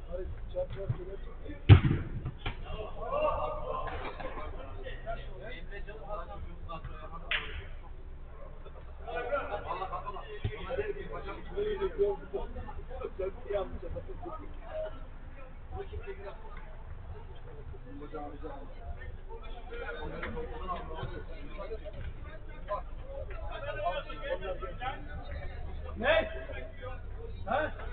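Several men shout and call out to each other from a distance.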